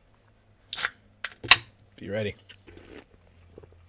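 A young man sips from a can.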